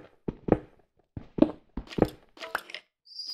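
A pickaxe chips at stone in quick knocks.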